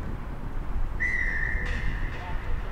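A referee's whistle blows once, sharp and short.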